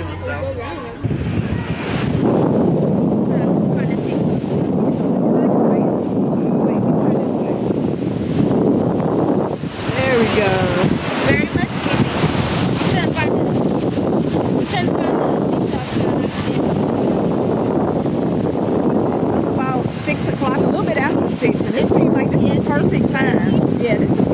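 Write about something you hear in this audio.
Waves break and wash onto the shore.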